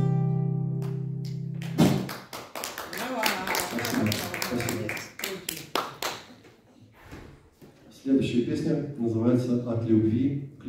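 A man strums an acoustic guitar through loudspeakers in a large hall.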